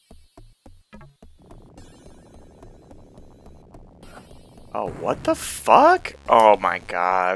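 Chiptune video game music plays.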